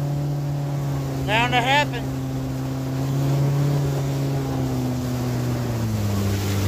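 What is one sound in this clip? An outboard jet motor drones, pushing an aluminium boat across a river.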